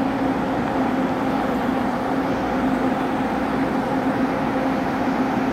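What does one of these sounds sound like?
A stationary train's engine hums steadily nearby.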